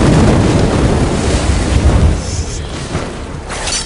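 A blade whooshes through the air in quick slashes.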